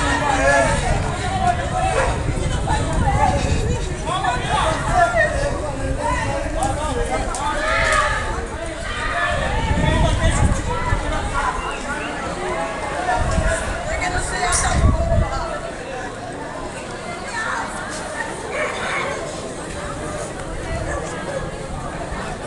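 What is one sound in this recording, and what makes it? A crowd of people chatters loudly all around, close by.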